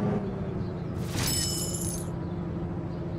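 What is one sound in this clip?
A bright chime rings out once.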